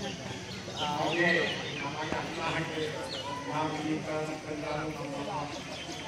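A crowd of women and men chatter all around.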